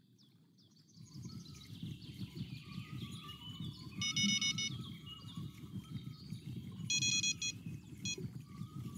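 A fishing reel clicks and whirs as its line is wound in.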